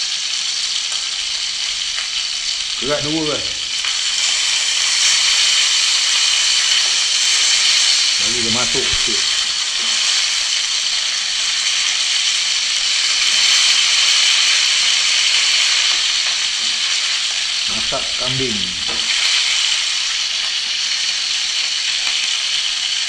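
Fish sizzles as it fries in oil in a pan.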